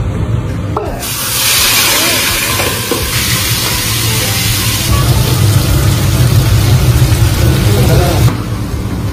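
Hot oil sizzles loudly in a pan.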